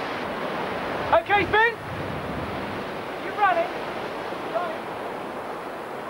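A man shouts out loudly outdoors.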